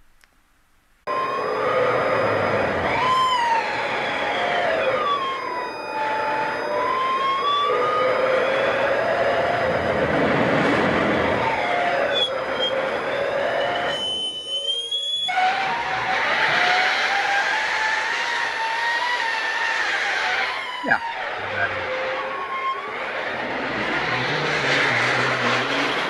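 A large metal sheet wobbles and sings with eerie, gliding, ringing tones.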